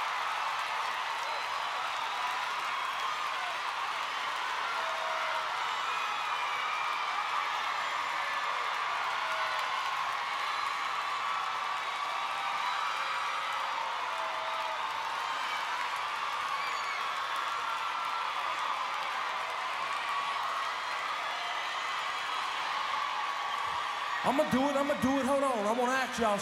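A large crowd cheers and screams steadily in a big hall.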